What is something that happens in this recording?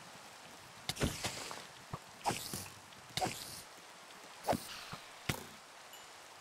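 A sword strikes a creature with quick, sharp hits.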